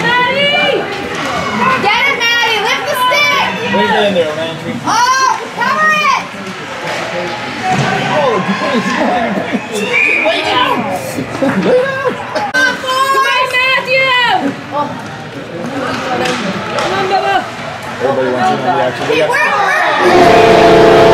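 Young players shout and call out in a large echoing rink.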